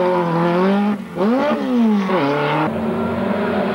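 A rally car engine revs hard and roars away.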